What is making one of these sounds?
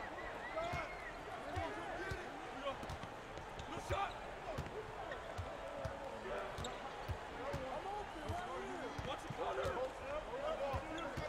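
A basketball bounces with steady thuds.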